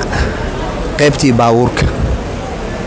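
A man speaks loudly nearby.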